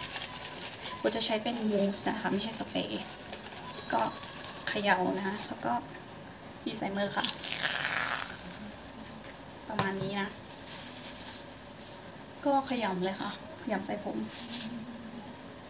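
A young woman talks calmly and close by.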